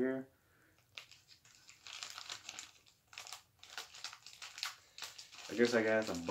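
Paper crinkles and rustles in a man's hands.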